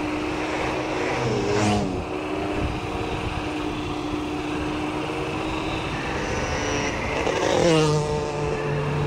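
A motorcycle engine revs up and down as gears change.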